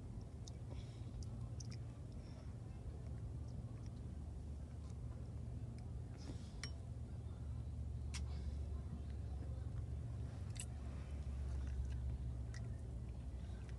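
A child slurps noodles.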